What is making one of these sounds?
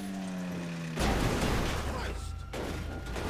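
A car crashes with a loud metallic crunch.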